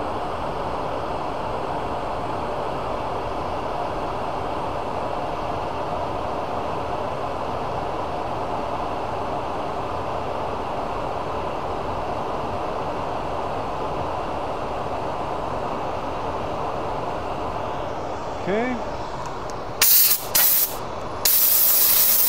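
A lathe motor hums steadily as a metal shaft spins.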